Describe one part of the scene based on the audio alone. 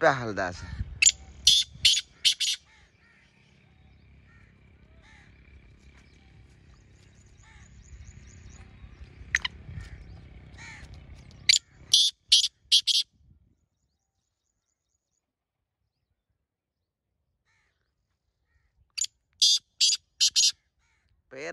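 A bird calls in short, sharp, repeated bursts.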